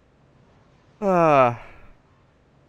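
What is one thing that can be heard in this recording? A young man lets out a loud, falling exclamation.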